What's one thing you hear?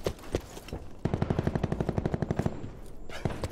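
A pistol fires a rapid burst of shots in a video game.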